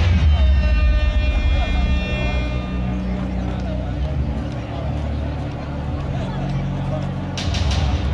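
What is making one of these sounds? Music with a deep bass plays loudly over loudspeakers in a large echoing hall.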